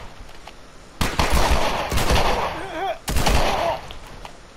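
A pistol fires several loud shots that echo.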